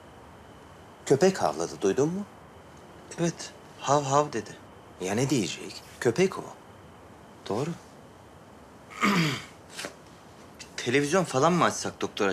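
A man talks calmly nearby in short bursts.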